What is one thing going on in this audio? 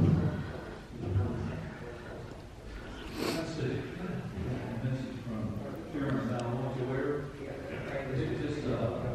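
Men and women talk quietly at a distance in a large echoing hall.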